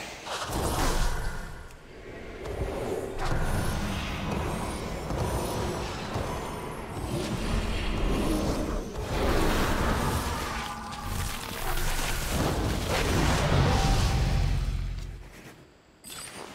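Magic spells crackle and boom in a loud fight.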